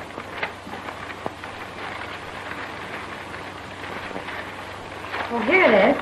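A woman speaks nearby, slightly muffled.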